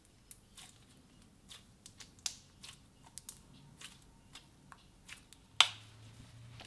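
Sticky slime squelches and pops as it is squeezed in a hand.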